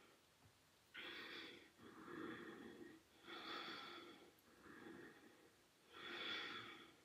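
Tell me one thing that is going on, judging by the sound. A woman breathes out forcefully in a steady rhythm, close by.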